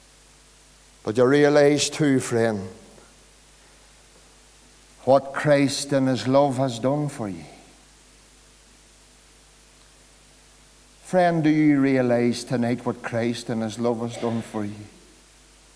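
An older man speaks slowly and earnestly into a microphone, with pauses, in an echoing hall.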